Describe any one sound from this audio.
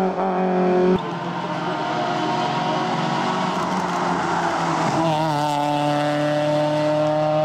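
A second rally car engine revs hard and roars past up close.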